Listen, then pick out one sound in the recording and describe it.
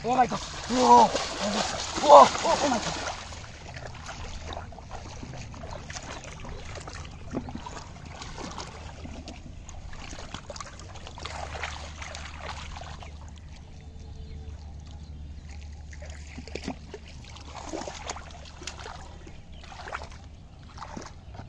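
Water splashes as a hand gropes around in shallow water.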